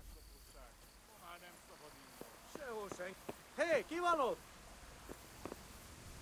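Footsteps tread on soft ground.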